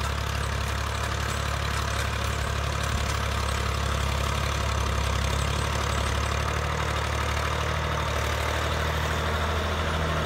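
A tractor engine drones close by, growing louder.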